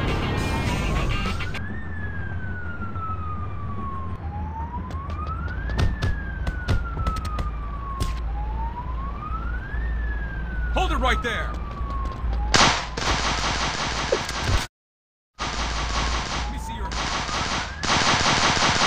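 A police siren wails, rising and falling over and over.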